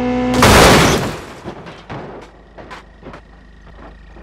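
Metal debris clatters and scrapes on the road.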